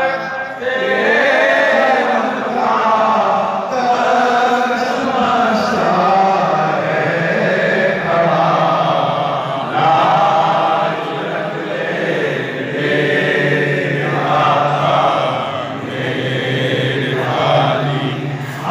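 A man speaks loudly and with passion through a microphone and loudspeakers, outdoors.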